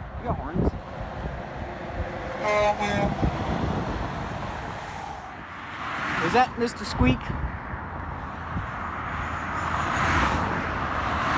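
Traffic rushes past on a highway, rising and fading as vehicles go by.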